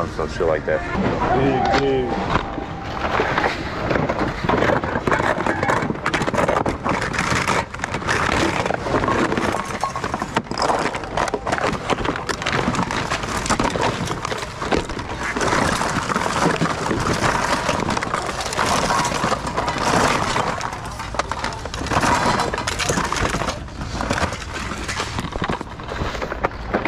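Hands rummage through plastic packages and toys, which rustle and clatter.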